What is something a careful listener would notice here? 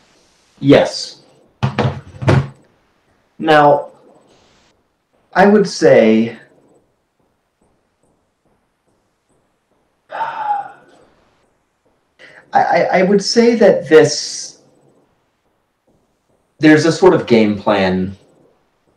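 A young man speaks with animation over an online call, in short bursts with pauses.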